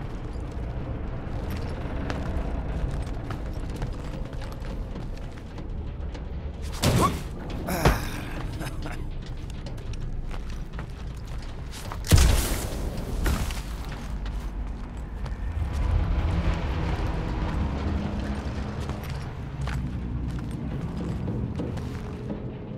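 Footsteps crunch over debris.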